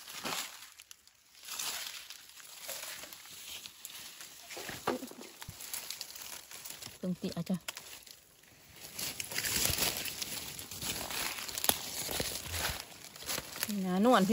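Dry leaves rustle and crunch underfoot as someone walks.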